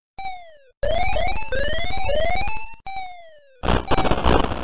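Short electronic bleeps slide down and up in pitch.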